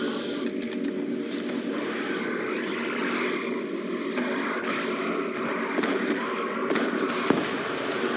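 Fire crackles and roars.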